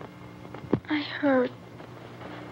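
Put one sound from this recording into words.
A young girl speaks weakly.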